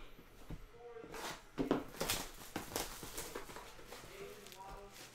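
Cardboard packaging rustles and scrapes as it is handled.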